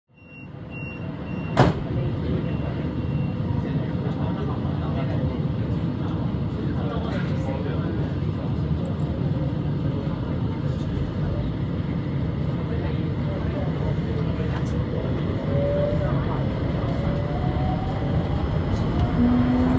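A train rumbles steadily along the tracks through a tunnel.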